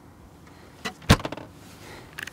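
A plastic lid knocks and scrapes.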